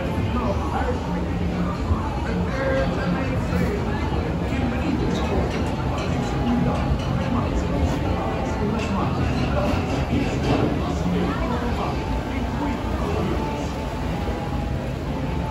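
A crowd of people chatters all around, close by.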